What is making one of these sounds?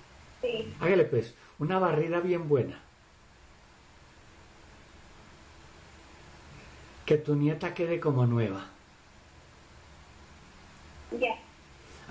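A middle-aged man speaks calmly and slowly over an online call.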